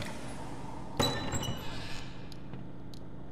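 A heavy metal door clanks and swings open.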